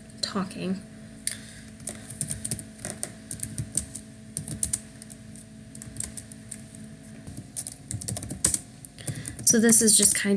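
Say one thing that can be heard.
Keys click rapidly on a computer keyboard.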